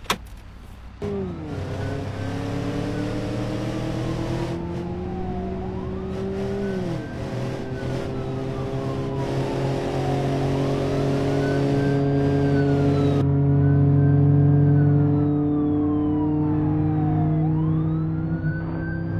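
A car engine revs hard, rising and dropping as the gears change.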